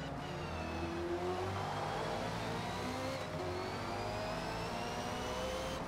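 A race car engine roars, rising in pitch as it accelerates through the gears.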